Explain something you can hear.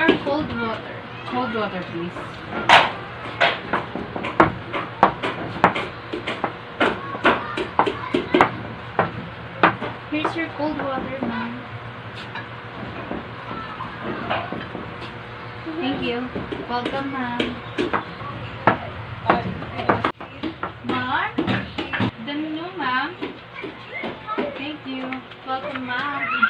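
A young woman speaks calmly nearby.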